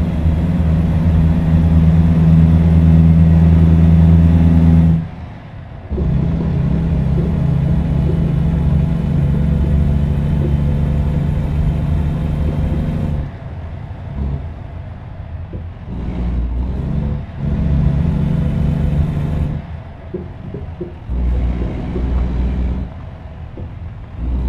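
A truck engine rumbles, rising and falling as the driver works the throttle.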